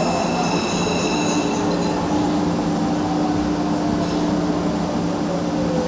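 A train's motor whines with a high steady tone.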